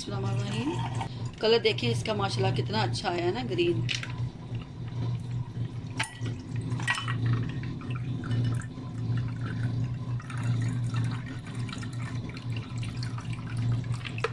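Juice pours and splashes into a glass.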